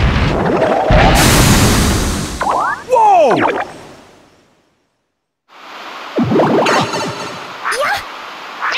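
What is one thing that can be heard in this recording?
Spooky video game sound effects whoosh and swirl.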